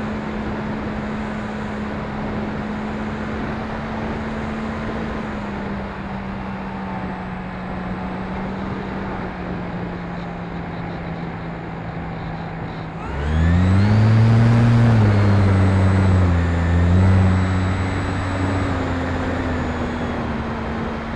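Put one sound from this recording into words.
A small model plane's electric motor hums steadily, then revs up loudly and its pitch wavers.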